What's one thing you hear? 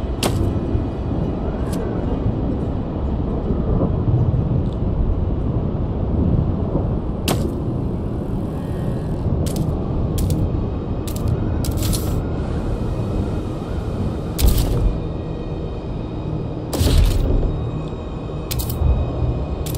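A cold wind blows steadily in a low, rumbling roar.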